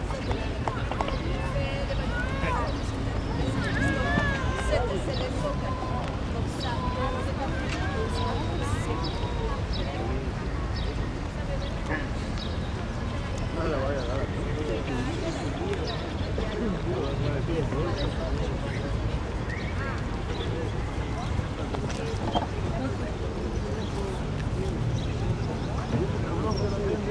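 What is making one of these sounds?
A crowd of people chatters at a distance outdoors.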